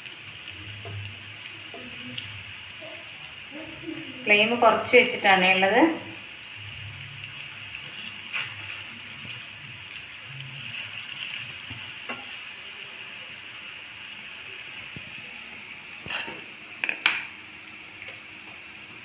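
Oil sizzles steadily in a frying pan.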